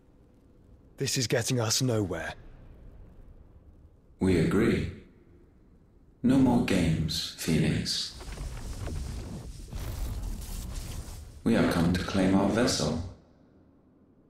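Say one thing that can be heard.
A deep, echoing voice speaks slowly and gravely.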